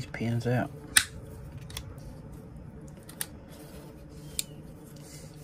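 Metal pliers click against a small metal part.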